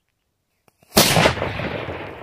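A firecracker explodes with a loud bang outdoors.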